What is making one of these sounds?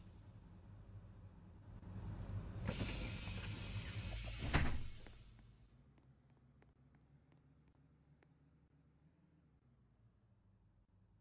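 A bus engine idles with a low rumble.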